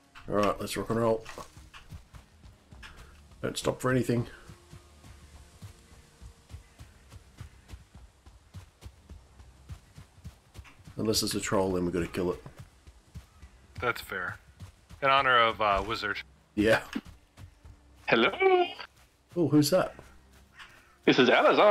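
Footsteps pad quickly through grass and undergrowth.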